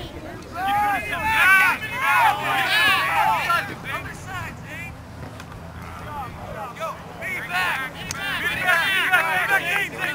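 Spectators cheer from the sideline.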